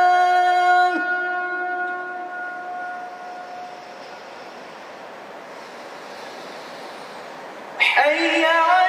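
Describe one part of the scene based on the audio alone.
A young boy's amplified voice echoes and slowly fades in a large echoing hall.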